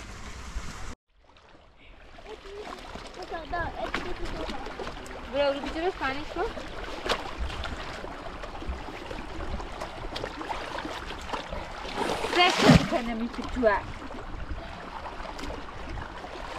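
Water splashes as cloth is sloshed and rubbed in a shallow stream.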